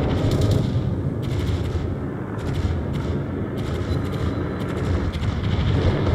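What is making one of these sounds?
A ship's engine rumbles steadily.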